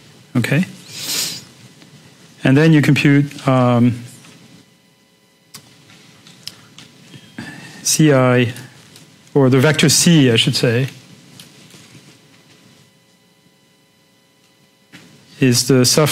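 A man lectures calmly into a microphone, pausing between phrases.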